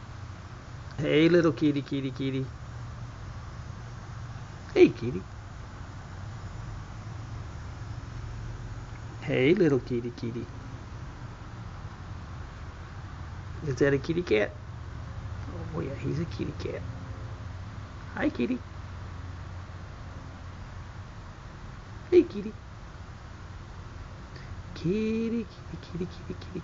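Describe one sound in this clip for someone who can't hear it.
A cat meows loudly several times, close by.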